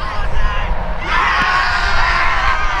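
A crowd of young spectators cheers and shouts.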